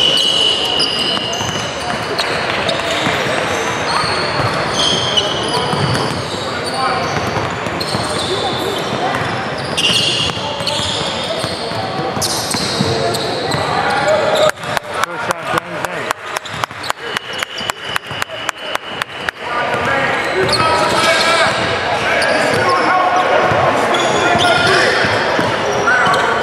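Players and onlookers chatter and call out in a large echoing hall.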